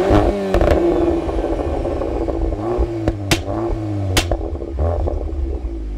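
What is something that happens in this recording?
A car exhaust pops and crackles loudly.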